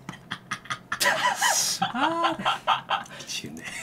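A man laughs loudly and excitedly.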